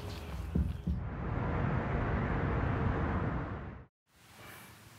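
Cars drive past on a busy road.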